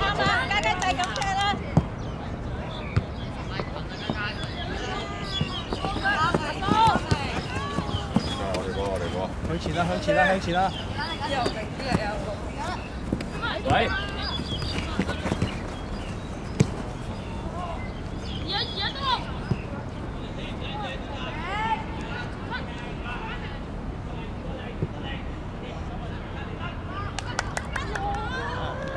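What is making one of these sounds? Boys shout and call out to each other outdoors.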